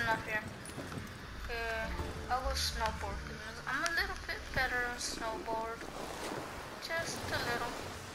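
A snowboard scrapes and hisses over snow.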